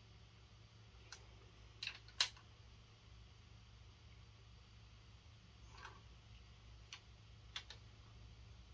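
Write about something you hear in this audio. A ratchet wrench clicks as bolts are tightened.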